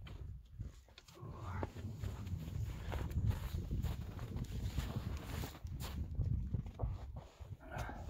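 A plastic sled scrapes over packed snow.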